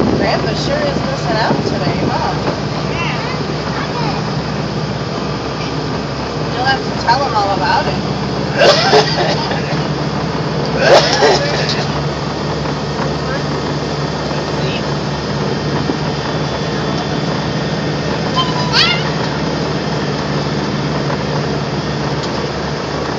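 A propeller engine idles and drones steadily nearby.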